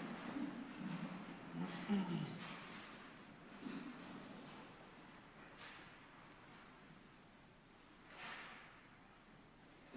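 Footsteps walk slowly along an aisle in a large echoing hall.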